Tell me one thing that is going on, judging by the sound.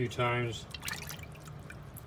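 Water sloshes as a hand scrubs something in a basin.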